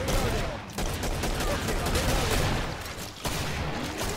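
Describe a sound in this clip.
Gunshots crack from a pistol in short bursts.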